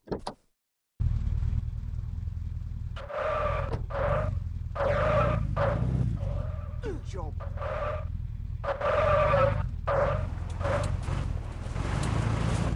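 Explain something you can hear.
A car engine rumbles and revs steadily.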